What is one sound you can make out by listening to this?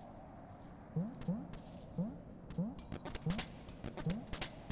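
Short rising blips sound as a small game character hops about.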